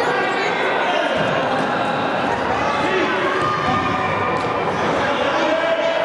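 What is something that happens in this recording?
A ball thumps when kicked.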